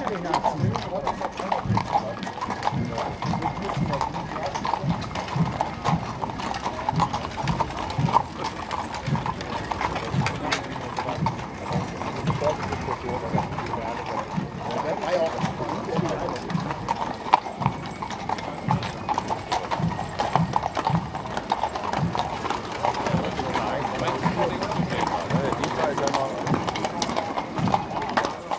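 Carriage wheels rumble and rattle over the road.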